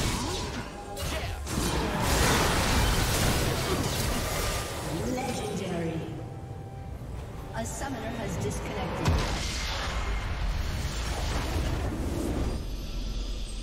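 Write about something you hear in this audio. Fantasy battle effects whoosh, crackle and clash.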